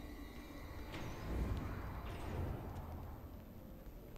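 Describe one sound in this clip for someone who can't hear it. A heavy metal lid creaks open.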